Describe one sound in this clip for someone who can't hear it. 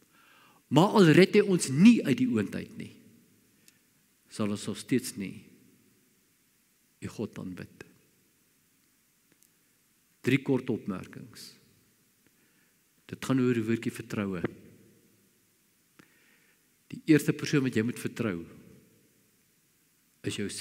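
An elderly man speaks slowly and deliberately through a microphone, pausing between phrases.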